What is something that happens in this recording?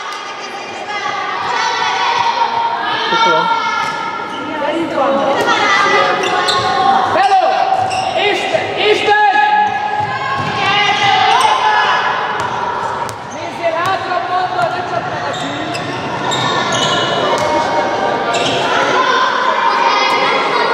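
Young girls shout and call out to each other in a large echoing hall.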